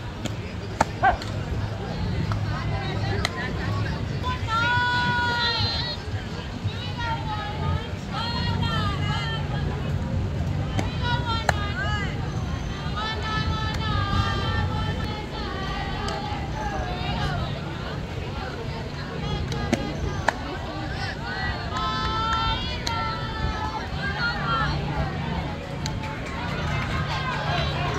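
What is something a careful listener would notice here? Young girls shout and chant cheers outdoors at a distance.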